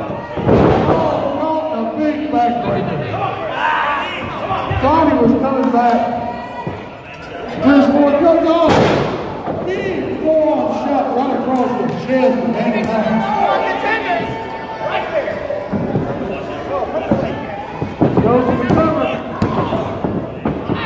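A crowd of people shouts and cheers nearby in an echoing hall.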